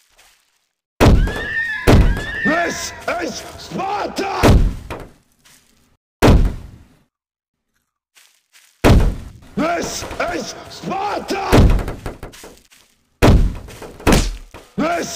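A gun fires several loud, booming shots.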